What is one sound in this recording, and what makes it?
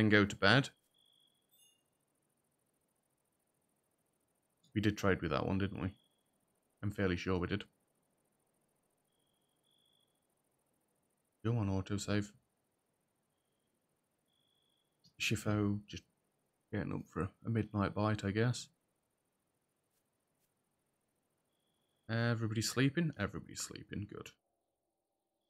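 A man talks casually into a close microphone, in short bursts.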